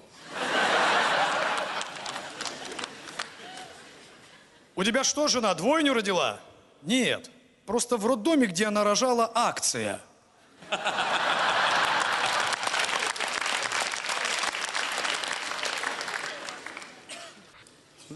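An audience laughs and applauds in a large hall.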